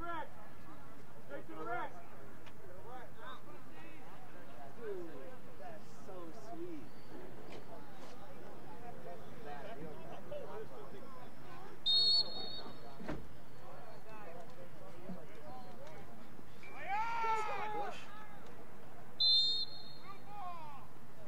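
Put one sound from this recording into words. Players and spectators shout and call out across an open field.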